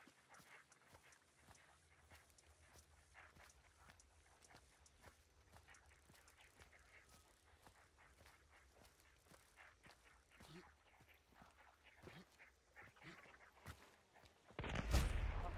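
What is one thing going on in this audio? Footsteps tread quickly over the ground.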